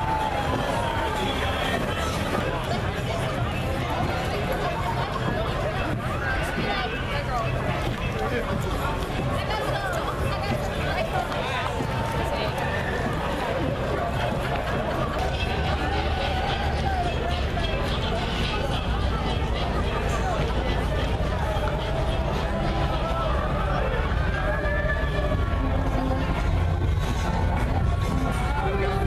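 A crowd of people chatters and calls out outdoors.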